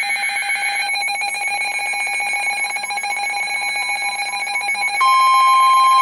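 A weather radio plays a broadcast through its small loudspeaker.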